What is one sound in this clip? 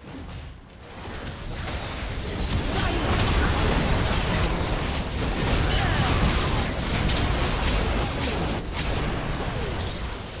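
Game spell effects whoosh, crackle and blast in a busy fight.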